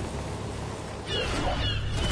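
Wind rushes past during a fall.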